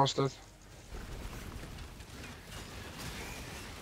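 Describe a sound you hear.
Spell effects whoosh and crackle in a video game.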